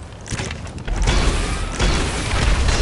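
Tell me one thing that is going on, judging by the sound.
A rocket whooshes through the air.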